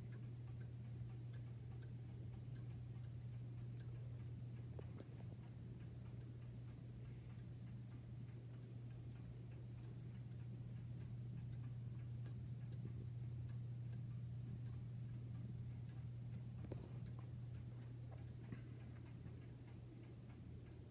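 A pendulum clock ticks steadily.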